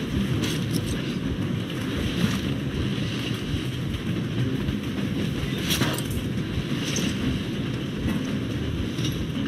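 Strong wind blows steadily through a snowstorm.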